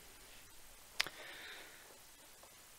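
A hand taps and slides playing cards across a cloth.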